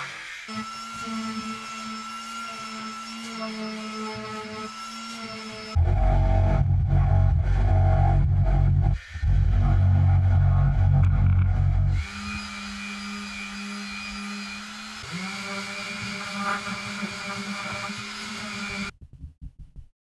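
An electric sander whirs steadily.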